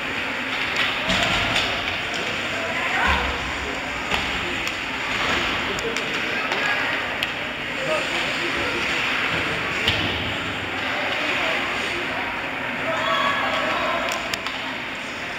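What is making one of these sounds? Hockey sticks clack against a puck in an echoing rink.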